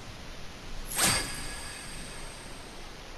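A sharp magical swish sounds.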